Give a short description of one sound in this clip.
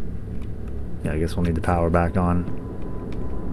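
A man speaks briefly and with animation, close to a microphone.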